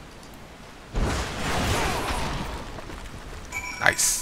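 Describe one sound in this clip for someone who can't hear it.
A heavy blow strikes a boulder, which breaks apart with a rumbling crash.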